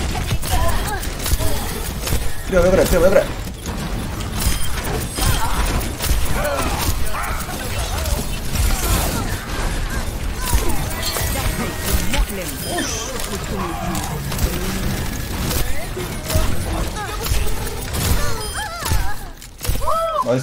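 Gunshots and game effects rattle in quick bursts.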